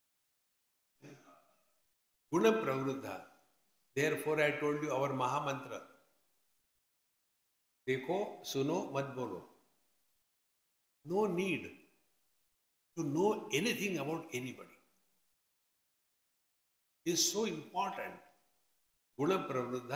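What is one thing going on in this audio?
An elderly man speaks calmly and with emphasis into a microphone, pausing between phrases.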